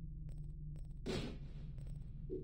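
A short whoosh sounds as a game menu closes.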